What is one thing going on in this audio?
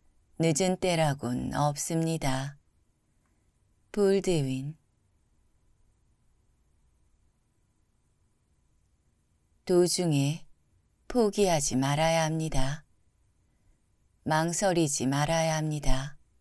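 A young woman reads out calmly and slowly into a close microphone, with long pauses.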